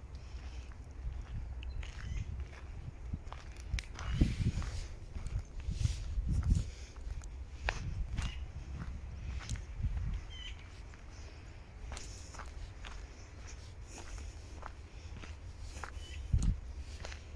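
Footsteps crunch on dry twigs and pine needles.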